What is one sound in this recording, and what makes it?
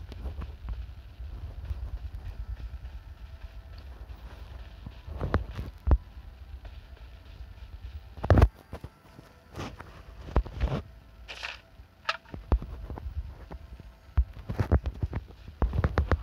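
Footsteps thud on grass and gravel.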